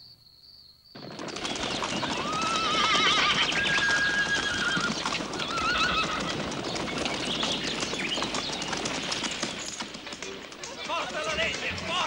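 Many horses gallop, their hooves thundering on dry ground.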